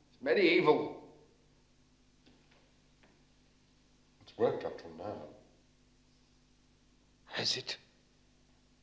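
A man speaks calmly and briefly, with pauses.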